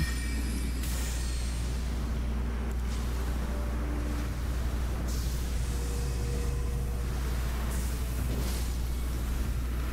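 A magical blade whooshes and bursts with a shimmering blast.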